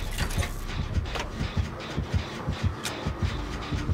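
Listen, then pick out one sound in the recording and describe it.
An engine rattles and clanks nearby.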